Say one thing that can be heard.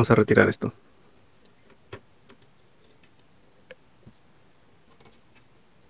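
A screwdriver clicks and scrapes against small metal screws.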